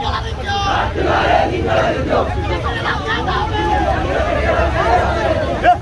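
A crowd of men chants and shouts together outdoors.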